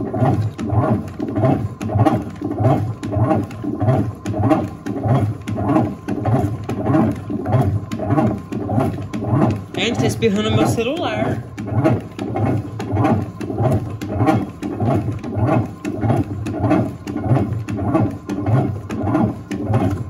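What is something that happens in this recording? Soapy water sloshes and gurgles in a washing machine drum.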